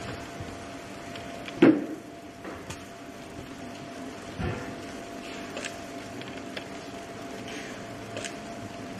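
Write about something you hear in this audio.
An electric fan whirs steadily.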